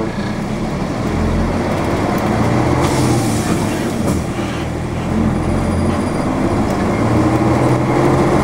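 A vehicle engine revs and pulls away, rising and falling in pitch.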